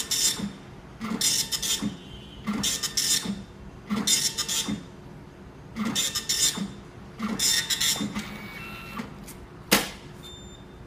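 A printer mechanism whirs and buzzes in short repeated bursts.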